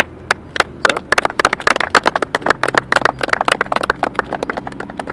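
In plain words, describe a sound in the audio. A small group of people claps outdoors.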